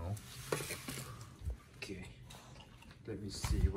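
A metal tray scrapes and clatters as it is set down on a hard floor.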